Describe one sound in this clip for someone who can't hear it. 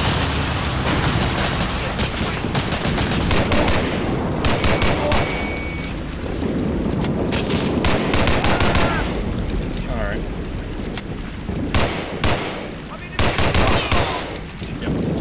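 A pistol fires shots in quick bursts.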